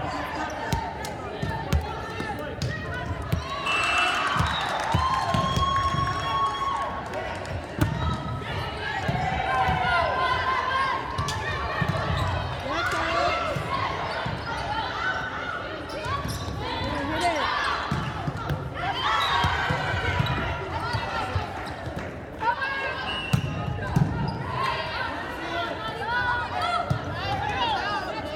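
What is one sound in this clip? Volleyball players shout and call to each other in a large echoing gym.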